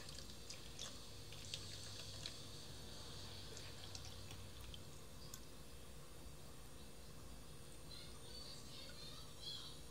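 Liquid pours into a plastic bottle.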